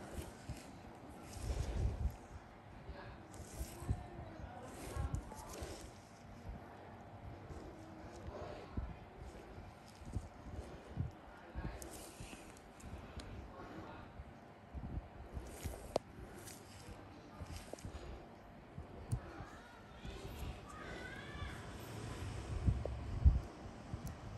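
Gloved fingers rub and squeeze against skin with soft rustling.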